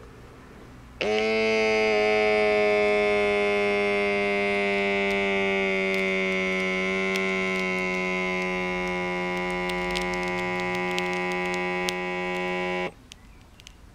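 A small pump motor hums steadily as a wrist cuff inflates, then stops abruptly.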